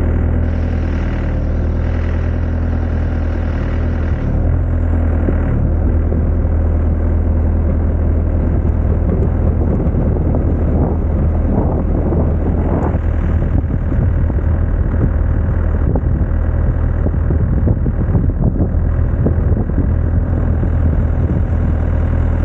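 A diesel engine rumbles steadily up close.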